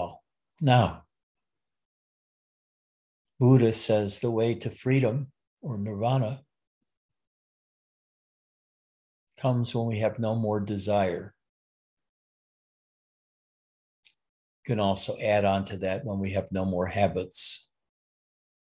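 An elderly man speaks calmly, with pauses, over an online call.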